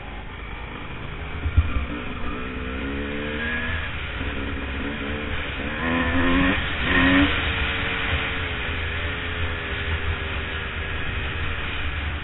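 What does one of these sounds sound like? A motorcycle engine drones and revs close by.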